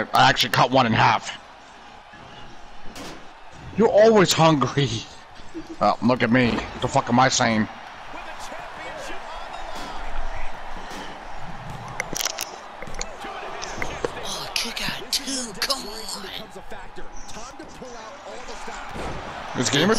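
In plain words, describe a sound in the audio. A crowd cheers and murmurs throughout.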